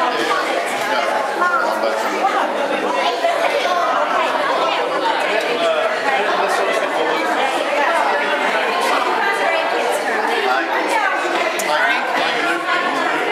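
Several women chatter and talk over one another nearby.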